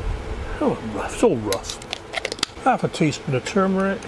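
A spoon clinks against a metal pot.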